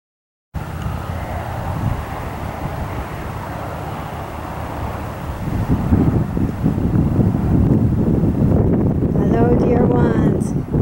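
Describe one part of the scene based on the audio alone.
Wind blows outdoors, rustling grass and leaves, growing stronger partway through.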